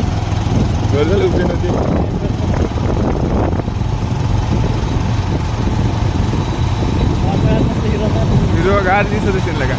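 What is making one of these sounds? A motorcycle cruises along an asphalt road.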